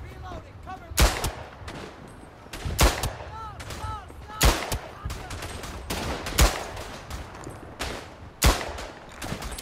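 A pistol fires single loud shots.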